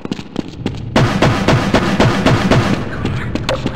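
A metal crowbar bangs repeatedly against a wooden crate.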